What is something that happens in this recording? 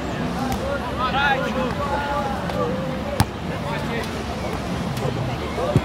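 A ball thuds as players kick and head it back and forth.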